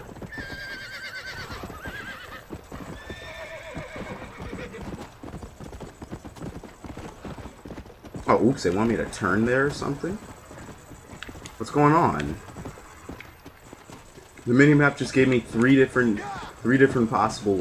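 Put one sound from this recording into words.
A horse's hooves pound steadily at a gallop.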